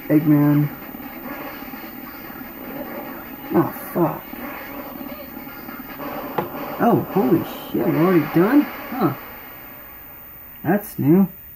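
Tinny video game music plays from a small handheld speaker.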